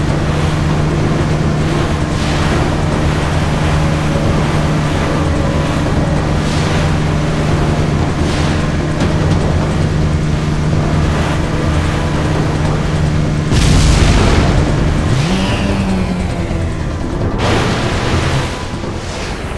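A jet ski engine drones steadily.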